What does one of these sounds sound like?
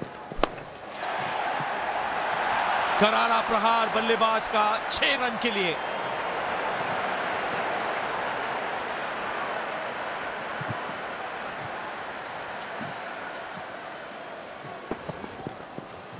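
A large stadium crowd cheers.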